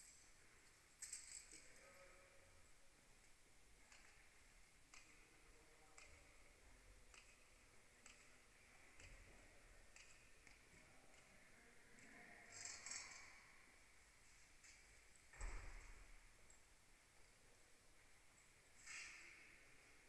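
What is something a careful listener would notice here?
Tennis balls are struck with rackets, echoing in a large indoor hall.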